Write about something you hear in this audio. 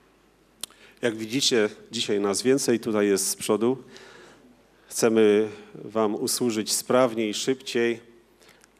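A man speaks loudly through a microphone in an echoing hall.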